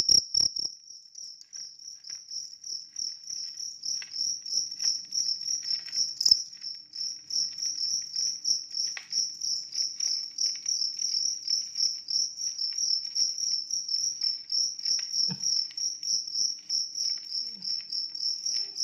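A cricket chirps rapidly and steadily, close by.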